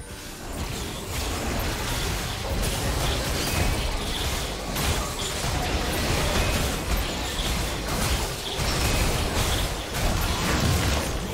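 Magic blasts crackle and zap in a fast video game battle.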